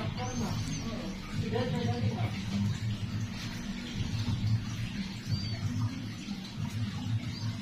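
Nail clippers snip at a toenail.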